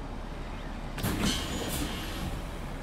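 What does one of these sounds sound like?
A bus door opens with a pneumatic hiss.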